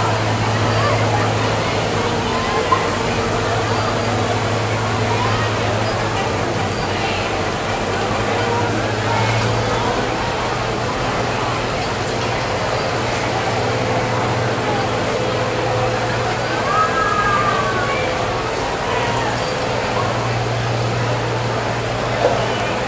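A large crowd chatters and shouts in the street below, heard from above.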